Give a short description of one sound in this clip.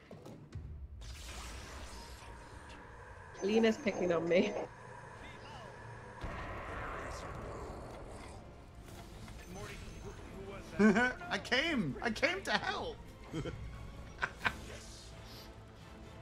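Magic spells zap and crackle in a game.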